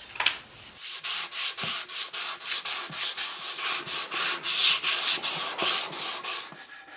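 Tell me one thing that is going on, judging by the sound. A sanding block rubs back and forth on wood in quick, rhythmic strokes.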